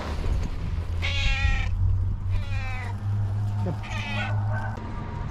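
A cat meows loudly several times close by.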